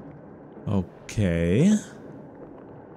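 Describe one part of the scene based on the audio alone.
A man exclaims loudly with a drawn-out voice into a close microphone.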